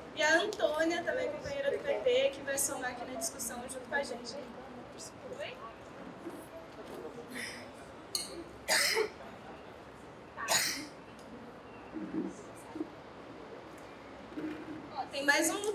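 A young woman speaks with animation through a microphone in an echoing room.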